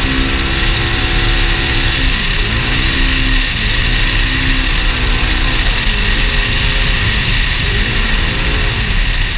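An off-road vehicle's engine drones and revs up and down as it drives.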